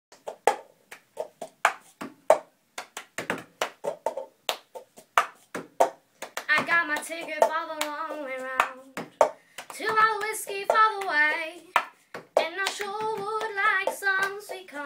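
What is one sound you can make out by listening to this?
Hands clap in a quick rhythm.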